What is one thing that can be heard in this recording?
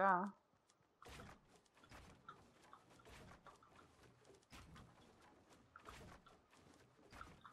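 Wooden building pieces snap into place with quick, repeated knocks.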